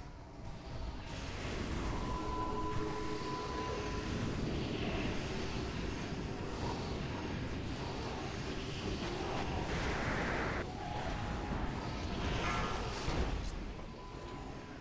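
Magic blasts and clashing combat effects rumble and crackle in a busy battle.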